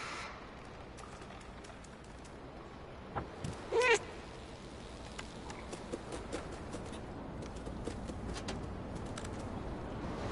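A cat's paws pad softly on hard ground.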